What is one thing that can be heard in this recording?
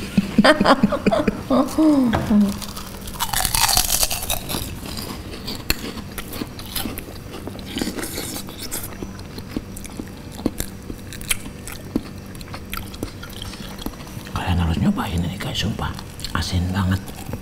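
Crispy food crunches as people chew.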